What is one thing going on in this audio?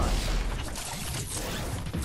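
A pickaxe swings and whooshes through the air.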